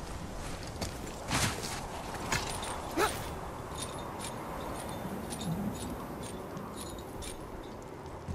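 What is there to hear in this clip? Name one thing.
Hands and feet crunch and scrape on icy rock during a climb.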